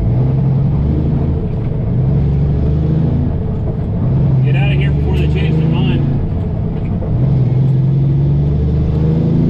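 A truck engine hums steadily from inside the cab.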